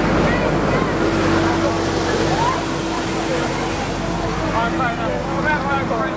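A street sweeper truck rumbles past with a steady engine hum.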